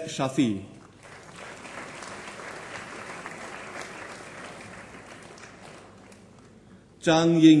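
Applause from a crowd fills a large hall.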